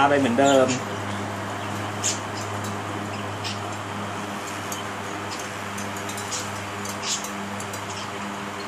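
Metal parts click and tap against a vise.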